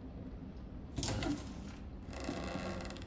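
A wooden wardrobe door creaks open.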